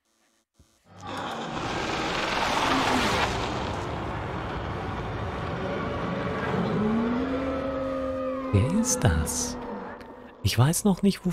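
A monster lets out a loud, rasping roar.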